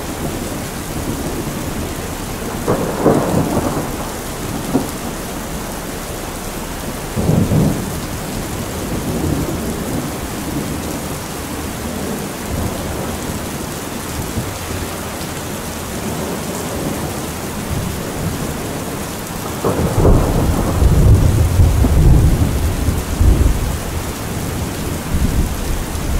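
Rainwater pours and splashes off the edge of a roof.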